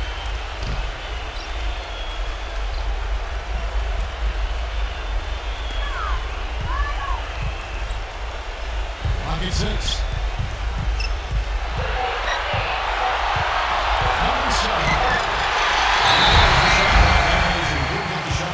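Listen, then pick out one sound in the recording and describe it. A crowd cheers in a large echoing arena, growing louder.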